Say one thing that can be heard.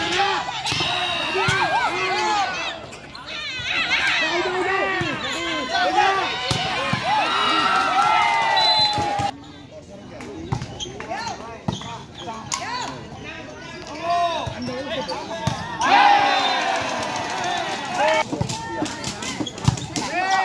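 A volleyball thumps as it is hit.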